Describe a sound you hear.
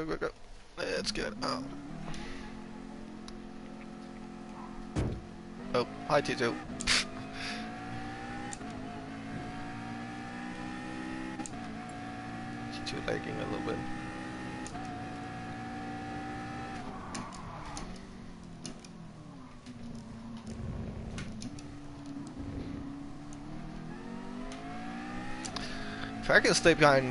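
A racing car engine drones and rises in pitch through the gears.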